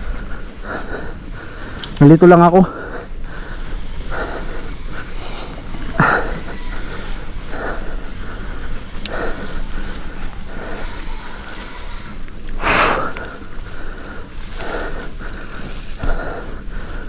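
Wind rushes past steadily outdoors.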